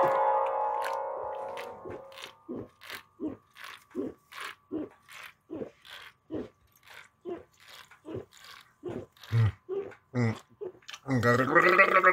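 A man gulps down a drink in steady swallows.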